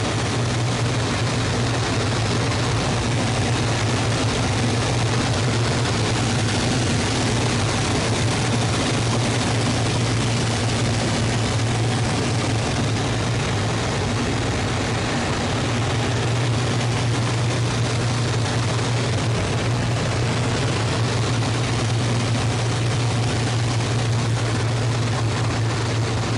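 A propeller engine drones loudly and steadily close by.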